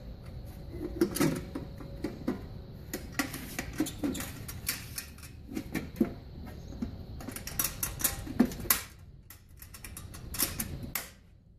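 Metal parts of a machine clatter and clank as hands handle them.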